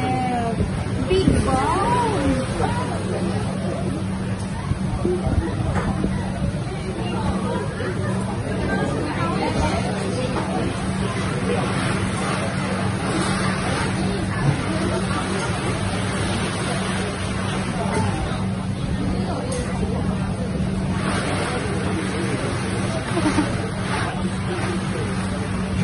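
Utensils clink against a bowl.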